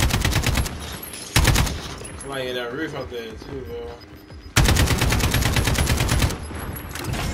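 Rapid automatic gunfire bursts out in loud, fast volleys.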